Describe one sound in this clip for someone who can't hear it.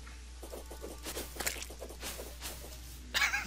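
Game sound effects of a sword swishing and striking play in quick bursts.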